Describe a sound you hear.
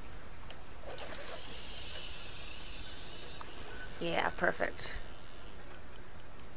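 A fishing reel whirs as a line is cast out.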